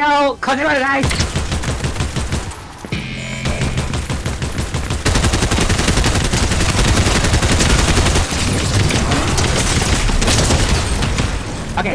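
Rapid gunfire rattles loudly in a video game.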